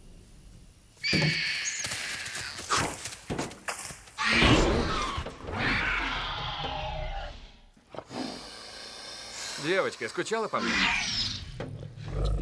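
A creature lets out loud, shrill screeches and chirps close by.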